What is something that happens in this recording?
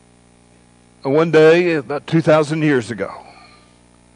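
An elderly man speaks with emphasis through a microphone in an echoing hall.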